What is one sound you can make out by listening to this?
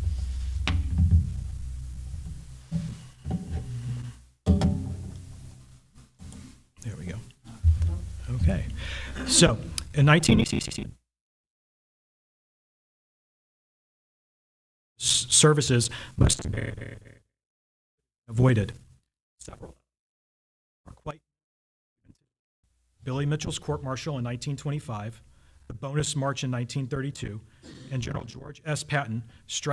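A man speaks calmly into a microphone, heard through a loudspeaker in a large room.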